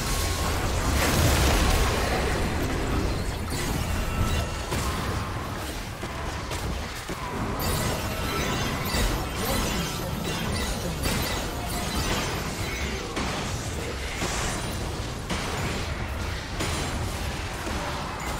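Game characters clash with rapid hits and blasts.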